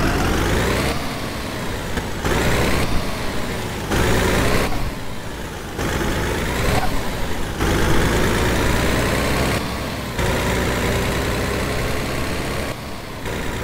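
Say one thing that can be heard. Tyres roll over the road surface.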